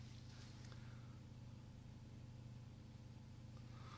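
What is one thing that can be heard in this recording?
A paintbrush softly dabs and strokes on paper.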